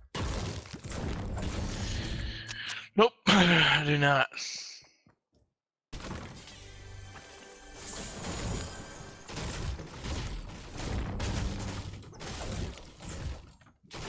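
A pickaxe swings with a swoosh and a thud.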